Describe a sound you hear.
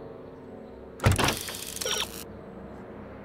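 A menu opens with a bright electronic whoosh.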